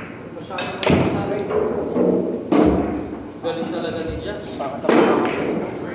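Billiard balls click together on a pool table.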